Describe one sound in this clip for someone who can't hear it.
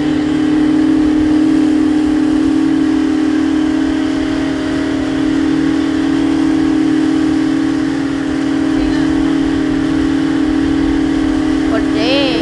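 Wind buffets loudly.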